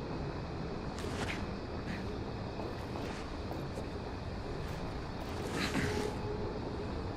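Footsteps scuff softly on a hard floor.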